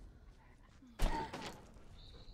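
A loud gunshot cracks, followed by a short echo.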